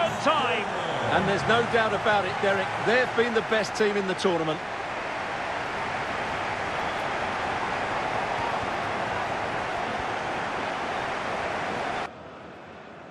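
A large crowd cheers and roars in a big stadium.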